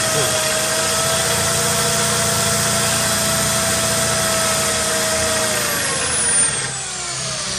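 A drill bit grinds against glass.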